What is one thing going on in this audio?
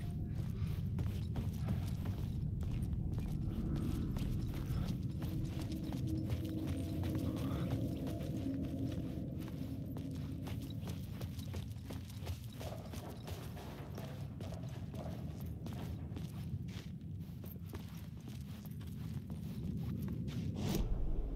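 Footsteps crunch over debris and gravel.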